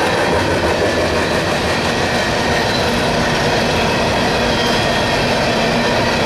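Another diesel-electric freight locomotive approaches.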